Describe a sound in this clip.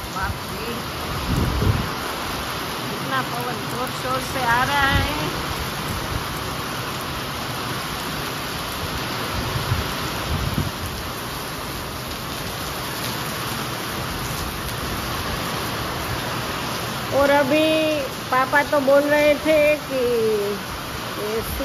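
Heavy rain pours steadily outdoors.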